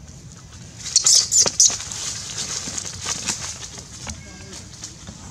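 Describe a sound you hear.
Monkeys tussle noisily in dry leaves.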